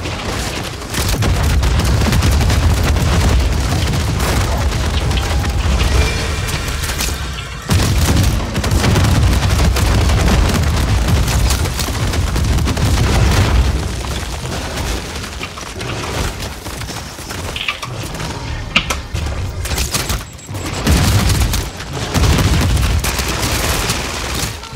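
A young woman talks with animation through a headset microphone.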